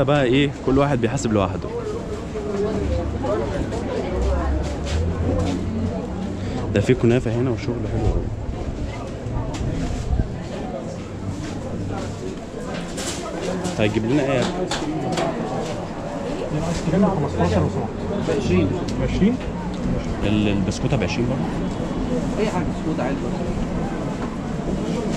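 A crowd of men and women chatter nearby in an echoing room.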